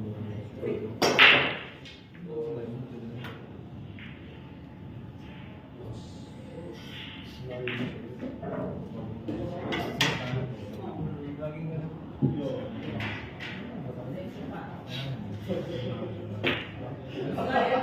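Men talk quietly nearby.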